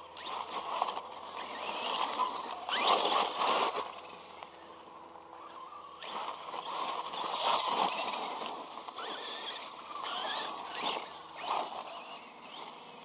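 Toy car tyres crunch and scatter dirt.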